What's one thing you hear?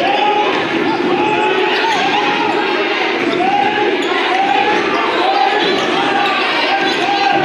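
Sneakers squeak sharply on a hard court, over and over.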